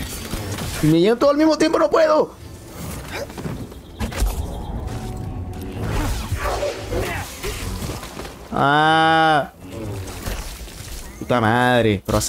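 A large creature lets out loud, wavering screeches.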